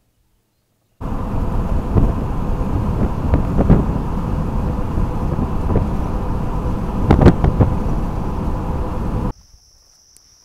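A vehicle rumbles loudly along a paved road.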